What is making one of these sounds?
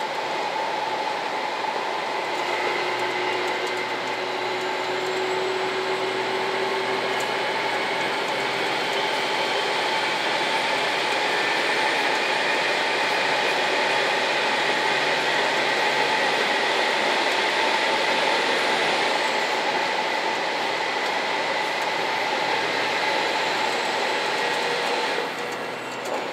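A diesel express train roars through a tunnel.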